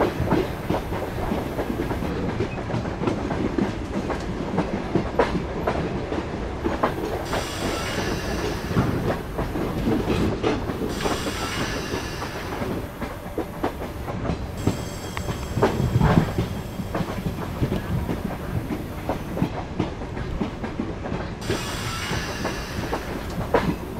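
A train rumbles steadily along the rails, with wheels clacking over the track joints.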